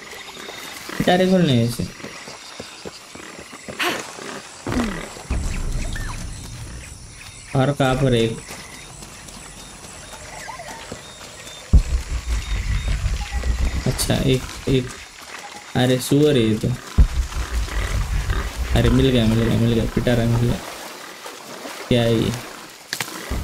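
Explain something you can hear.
Footsteps rustle through undergrowth on a forest floor.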